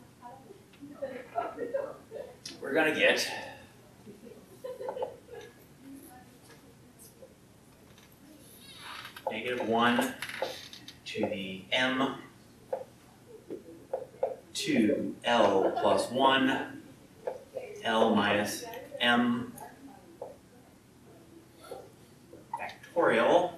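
A woman lectures calmly.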